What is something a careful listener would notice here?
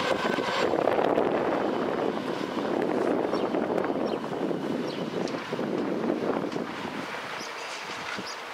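A train rumbles along the tracks nearby and fades as it moves away.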